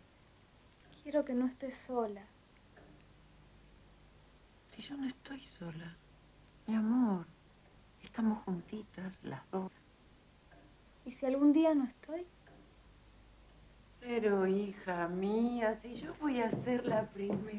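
A young girl speaks clearly and earnestly nearby.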